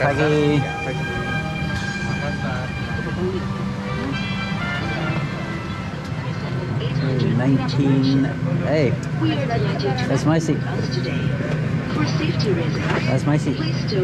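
Men and women chatter nearby in a crowded cabin.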